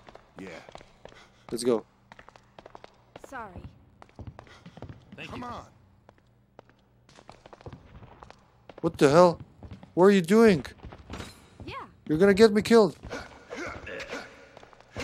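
A young man talks calmly into a close microphone.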